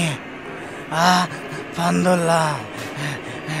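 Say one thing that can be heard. A man speaks in a strained, wild voice close by.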